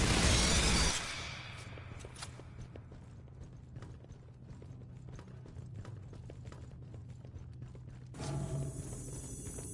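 Boots step on a metal floor.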